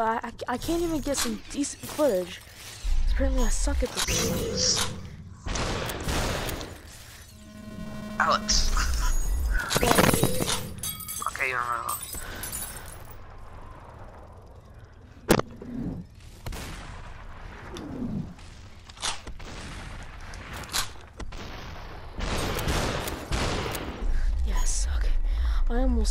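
Game figures shatter into pieces with glassy crashes.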